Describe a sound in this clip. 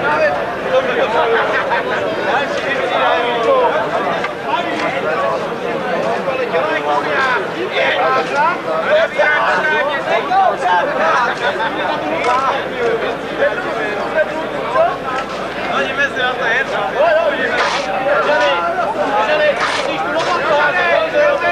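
A crowd of men and women sings together outdoors.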